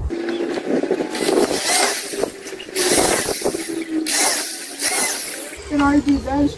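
An electric drill whirs in short bursts.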